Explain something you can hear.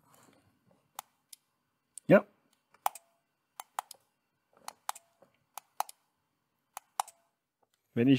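Hard plastic clicks and taps as hands handle a small plug adapter.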